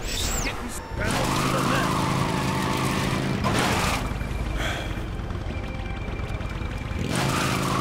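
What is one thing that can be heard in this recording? A quad bike engine roars and hums steadily.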